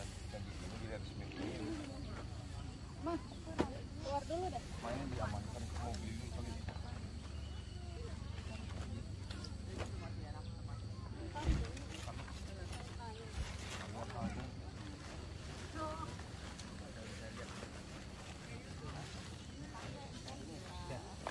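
A man rustles and folds a stiff fabric bag close by.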